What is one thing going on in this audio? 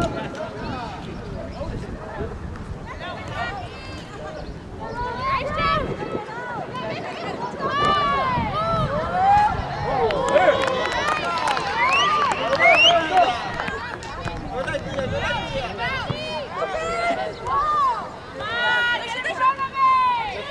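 Young women shout to each other in the distance across an open field.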